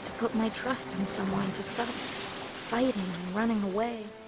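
A sailboat's bow splashes through choppy water.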